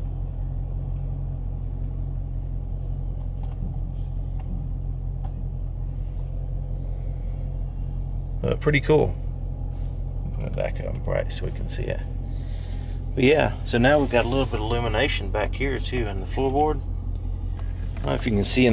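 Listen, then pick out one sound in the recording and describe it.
A car engine idles with a steady low hum.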